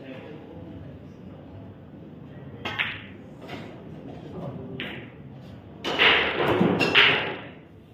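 Billiard balls click sharply against each other on a pool table.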